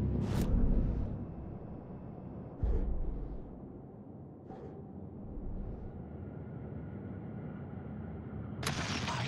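Soft whooshing sounds sweep past several times.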